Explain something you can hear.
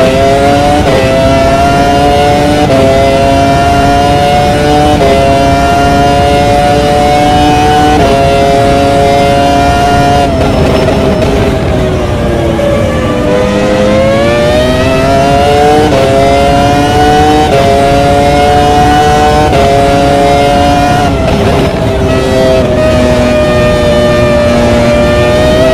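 A racing car engine screams at high revs, shifting up through the gears in steps.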